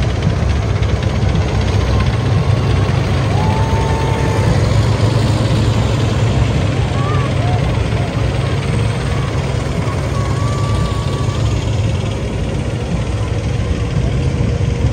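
A crowd murmurs and chatters close by.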